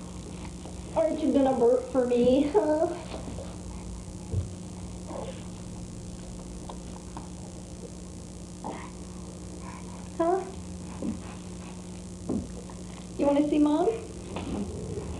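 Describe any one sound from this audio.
A woman speaks playfully to a baby close by.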